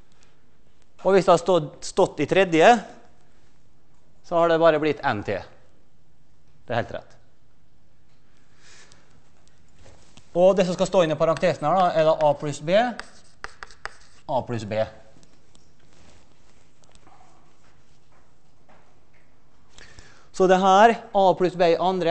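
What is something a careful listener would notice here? A man lectures through a microphone in a large echoing hall, speaking in short bursts with pauses.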